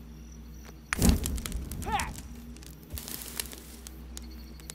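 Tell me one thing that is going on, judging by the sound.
A small fire ignites with a crackling whoosh.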